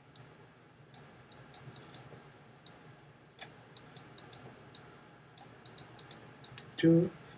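A stylus taps and scratches quickly on a tablet.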